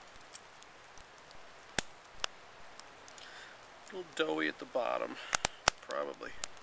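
Dry bark and lichen crackle as fingers pick at them.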